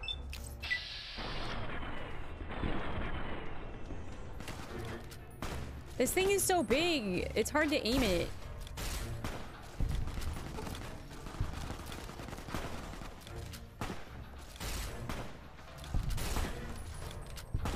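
Gunshots and energy blasts fire in quick bursts.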